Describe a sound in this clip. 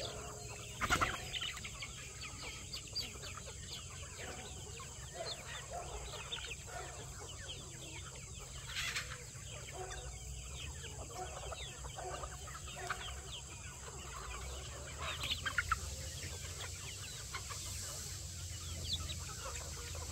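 A large flock of chickens clucks and chirps close by.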